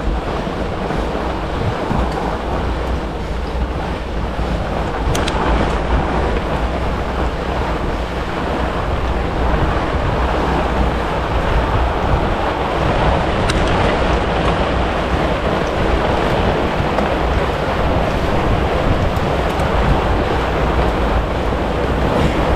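A bicycle chain and drivetrain whir steadily.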